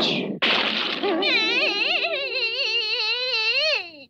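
A cartoon woman wails and sobs loudly.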